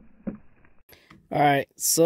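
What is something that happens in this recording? A pistol is set down on a metal surface with a knock.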